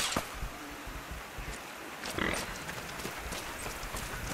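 Footsteps crunch on dry ground.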